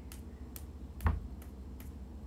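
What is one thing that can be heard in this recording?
A fist thumps once against a wall.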